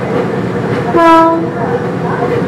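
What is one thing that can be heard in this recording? A train horn gives a short blast.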